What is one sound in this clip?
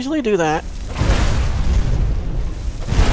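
Flames whoosh and roar from a burst of fire.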